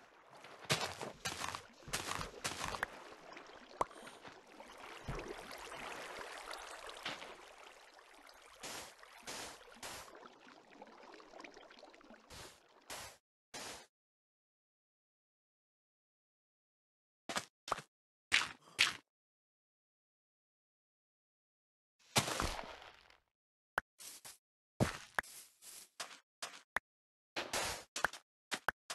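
Blocks of sand and earth are dug out with short crunching knocks.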